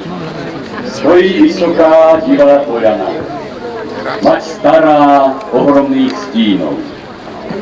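A man close by sings loudly.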